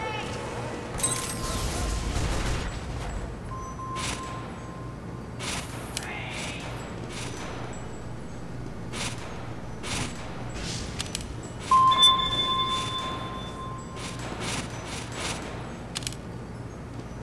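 Soft interface clicks and chimes sound as menu buttons are pressed.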